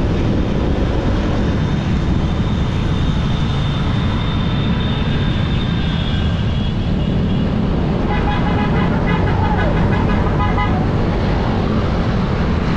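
Wind rushes past a moving motorcycle rider.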